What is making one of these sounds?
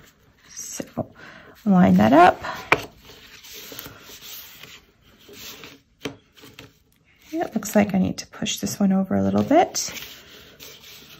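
Paper rustles and slides softly under hands.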